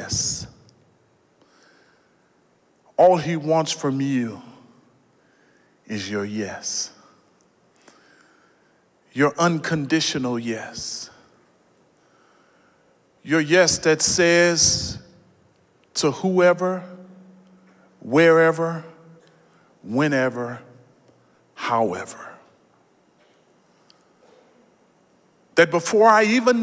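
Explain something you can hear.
A man preaches with animation through a microphone in a large hall, pausing between phrases.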